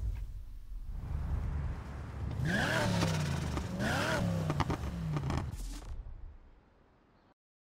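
A sports car engine idles and revs with a deep rumble.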